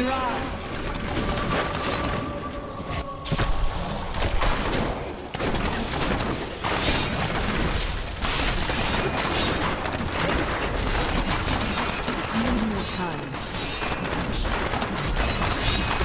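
Spells and explosions crackle and boom in a game fight.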